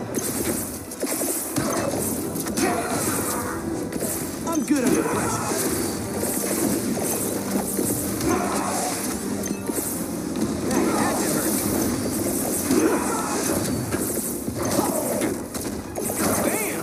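Video game sound effects chime and whoosh as items are collected.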